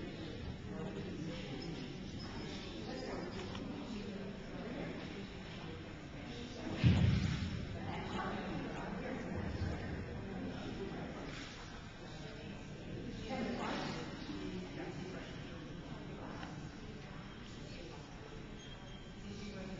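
Footsteps pad across a hard floor.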